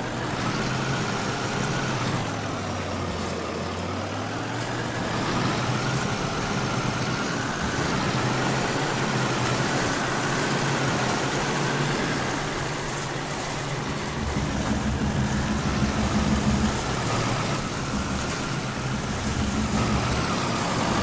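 Rushing water splashes loudly around a truck.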